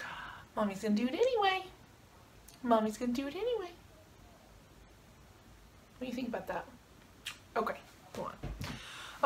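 A young woman talks softly and affectionately close by.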